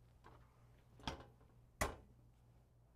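A heat press lid closes with a metal clunk.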